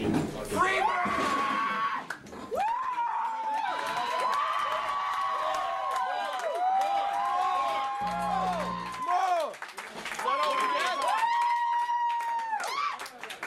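A crowd of young men and women talks and shouts loudly close by.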